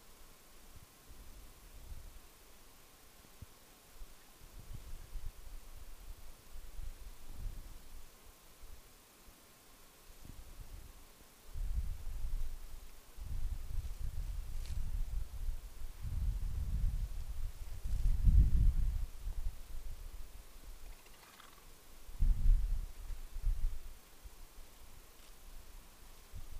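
Wind gusts outdoors and buffets in low rumbles.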